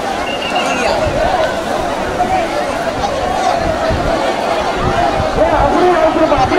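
A large crowd of men chatters and shouts loudly outdoors.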